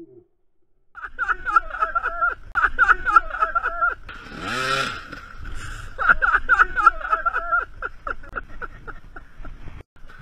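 A dirt bike engine revs hard and sputters close by.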